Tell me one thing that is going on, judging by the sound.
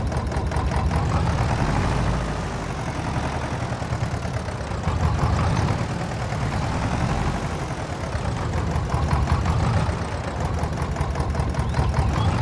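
An old tractor engine chugs steadily at low speed, rising and falling a little.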